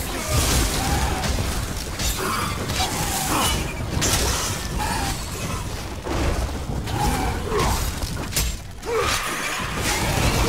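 Magic crackles and bursts with a rushing whoosh.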